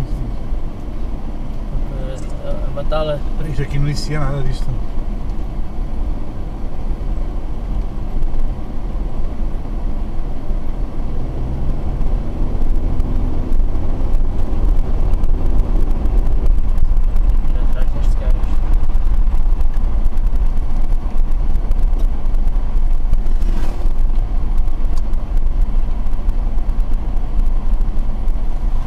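A car engine hums steadily from inside.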